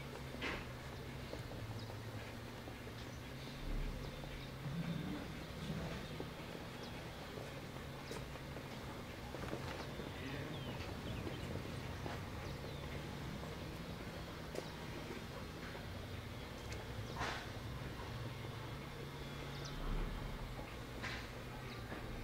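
A horse's hooves thud softly on sand at a brisk, even pace.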